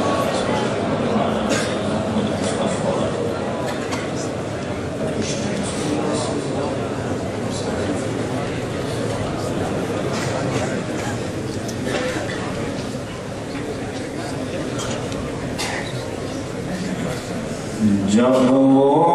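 A middle-aged man speaks with animation into a microphone over a loudspeaker.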